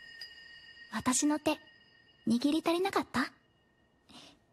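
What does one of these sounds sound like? A young girl speaks calmly and teasingly.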